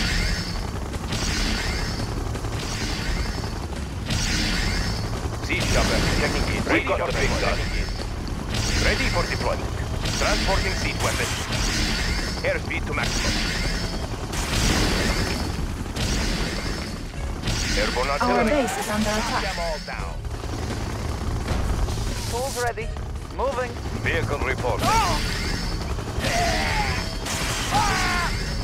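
Gunfire and explosions rattle in a large battle.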